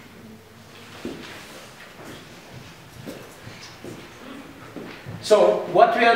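Footsteps walk across a hard floor.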